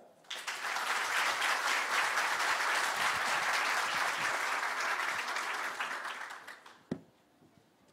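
An audience applauds in a large hall, then the clapping fades away.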